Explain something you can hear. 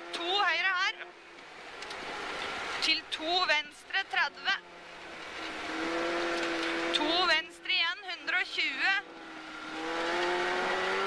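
A rally car engine roars, revving hard and dropping sharply between gear changes.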